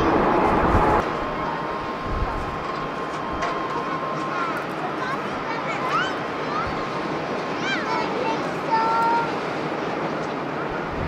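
A jet airliner's engines hum and whine as it taxis.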